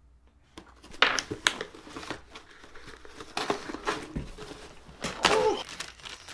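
A cardboard box rustles and scrapes as it is torn open.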